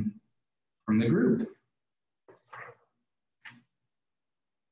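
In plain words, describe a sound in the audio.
A young man speaks briefly through an online call, then falls silent.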